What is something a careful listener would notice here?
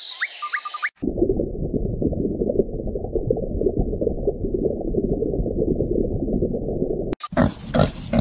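Water bubbles steadily.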